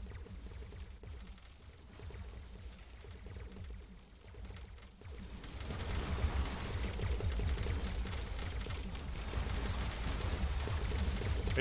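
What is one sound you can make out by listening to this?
Low rumbling battle effects play and grow louder.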